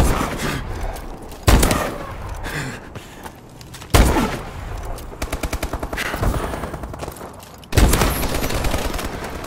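A rifle fires loud shots and rapid bursts.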